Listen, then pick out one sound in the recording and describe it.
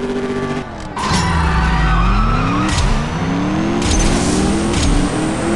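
A car engine roars as the car launches and climbs through the gears.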